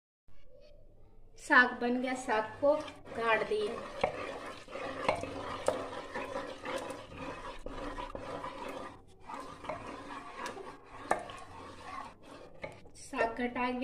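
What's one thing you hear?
A wooden masher thumps and squelches against a metal pot.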